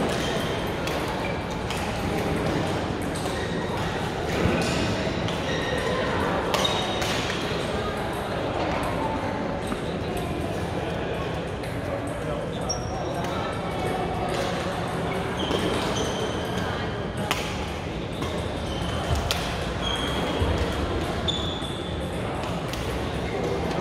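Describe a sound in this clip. Rackets hit a shuttlecock with sharp pops in a large echoing hall.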